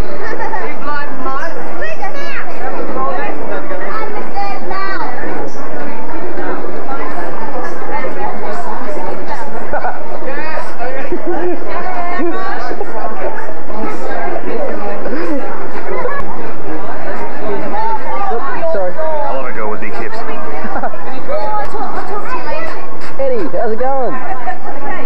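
A crowd of adults and children chatters outdoors nearby.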